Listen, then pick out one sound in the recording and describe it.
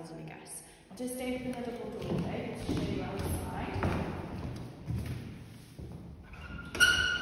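High heels click on a wooden floor.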